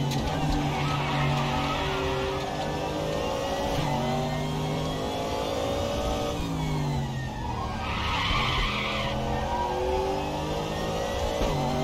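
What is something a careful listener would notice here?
A race car engine roars loudly, rising and falling in pitch as it shifts gears.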